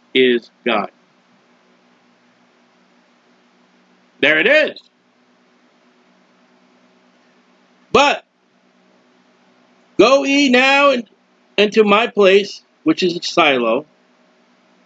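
A middle-aged man speaks calmly into a microphone in short bursts.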